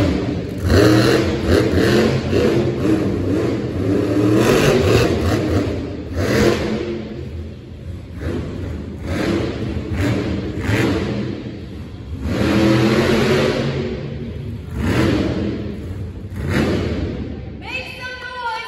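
A monster truck engine roars loudly, revving up and down in bursts.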